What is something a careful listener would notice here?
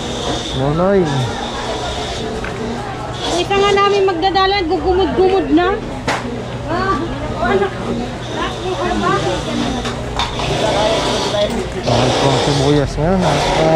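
A crowd murmurs and chatters all around.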